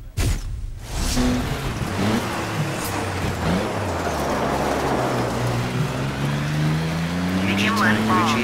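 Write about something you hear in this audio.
A rally car engine revs and roars, rising in pitch as it speeds up.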